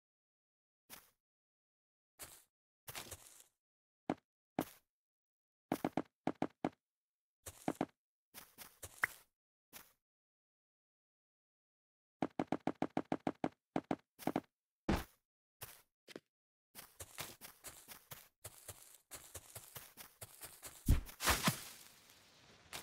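Blocks are placed with short soft clicks, one after another.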